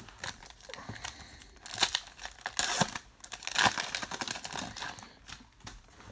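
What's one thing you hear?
A plastic wrapper crinkles and rustles as it is handled.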